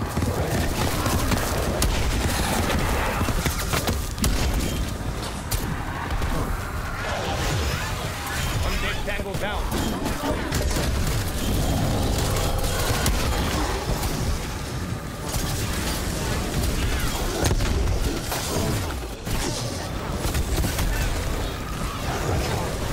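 A gun fires rapidly in bursts.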